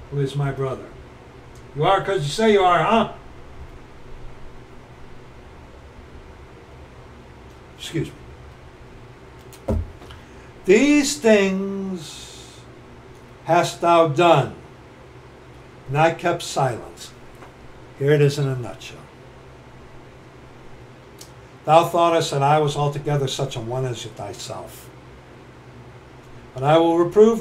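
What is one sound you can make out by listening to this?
A middle-aged man speaks close to a microphone in short bursts with pauses.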